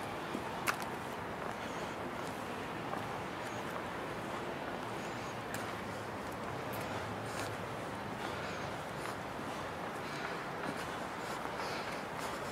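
Footsteps scuff on paving stones outdoors.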